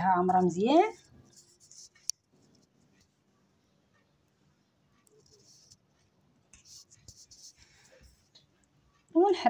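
A spoon stirs and clinks softly against a glass bowl.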